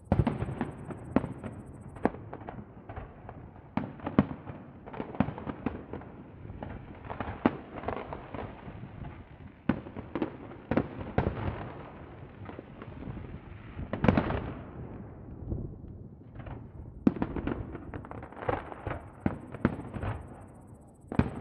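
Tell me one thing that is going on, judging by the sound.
Fireworks crackle and rumble after the bursts.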